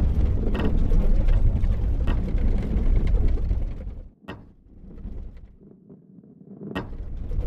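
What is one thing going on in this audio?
A heavy ball rolls and rumbles along a wooden track.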